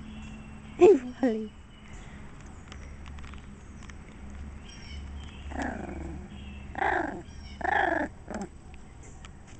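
A puppy yelps and whines up close.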